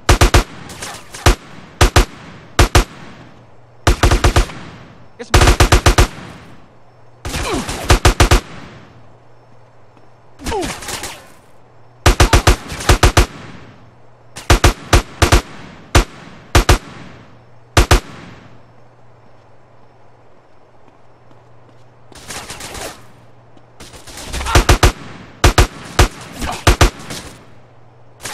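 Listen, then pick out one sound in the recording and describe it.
Gunfire cracks in short, rapid bursts, echoing in a large hall.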